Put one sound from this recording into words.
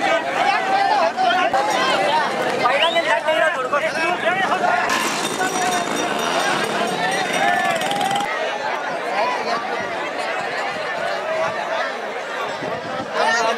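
A large outdoor crowd of men shouts and cheers loudly nearby.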